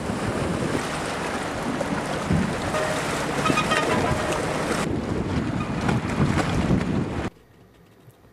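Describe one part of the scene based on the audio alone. Small waves lap and slosh against a dock.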